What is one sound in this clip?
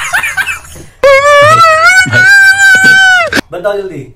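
A man wails and sobs loudly.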